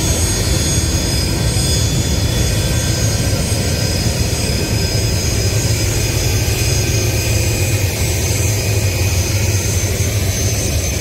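A jet engine roars and whines steadily close by.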